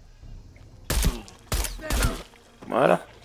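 A pistol fires a few sharp shots.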